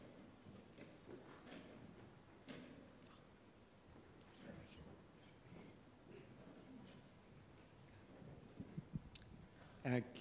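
A middle-aged woman speaks softly through a microphone.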